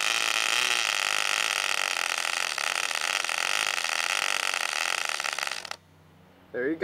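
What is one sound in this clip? A tiny Cox .049 glow-fuel model engine screams at high speed, then abruptly cuts out.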